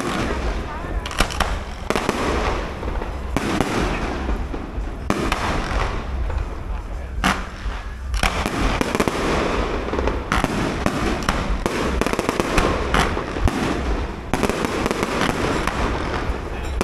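Fireworks bang and crackle overhead outdoors.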